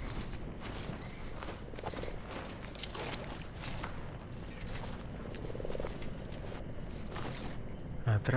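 Leaves rustle and swish as a figure pushes through foliage.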